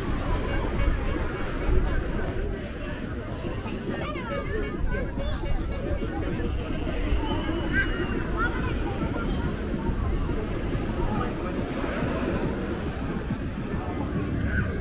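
Many people chatter and call out in the distance.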